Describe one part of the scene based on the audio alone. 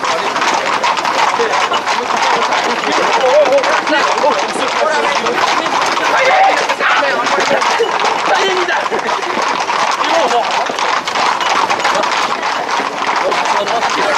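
Horse hooves clatter on a paved road.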